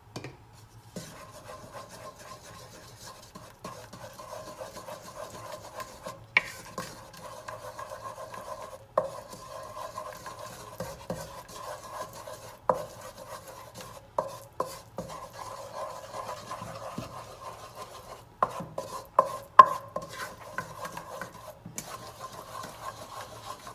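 Melted butter sizzles in a saucepan.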